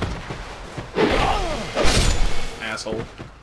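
A sword swings and strikes with a sharp clash.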